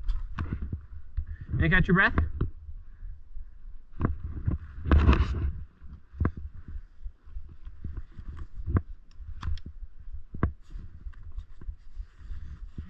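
Skis scrape and swish over snow.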